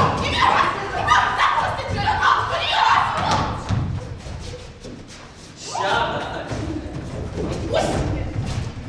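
Young women shout and squeal excitedly nearby.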